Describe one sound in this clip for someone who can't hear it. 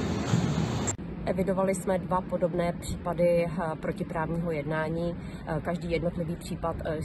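A woman speaks calmly into a microphone up close.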